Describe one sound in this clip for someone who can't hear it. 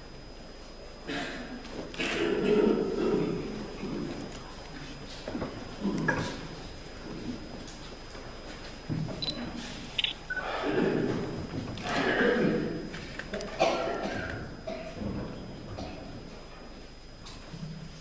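A man speaks loudly and theatrically in a large echoing hall.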